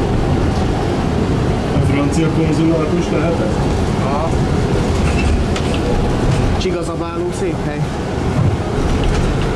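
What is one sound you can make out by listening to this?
A tram rumbles and rattles steadily along its tracks.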